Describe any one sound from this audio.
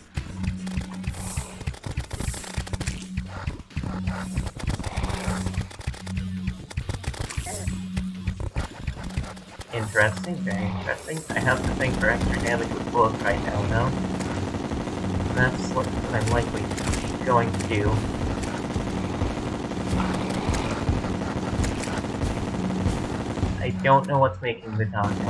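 Video game battle effects zap and blast rapidly.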